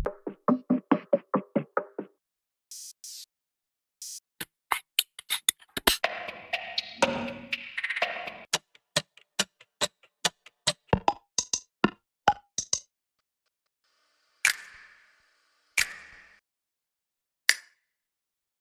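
Short drum loops play one after another, with sharp hits and pauses between them.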